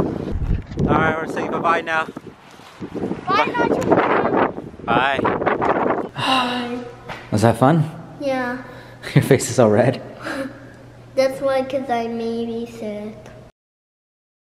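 A young boy talks excitedly and close by.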